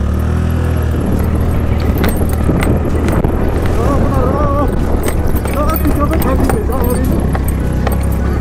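Tyres crunch and rattle over loose gravel and dirt.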